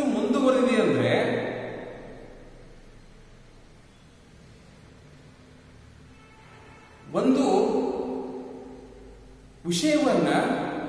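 A man speaks calmly and clearly close by, in a room with a slight echo.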